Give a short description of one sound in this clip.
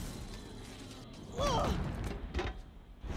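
A young woman cries out and groans in pain.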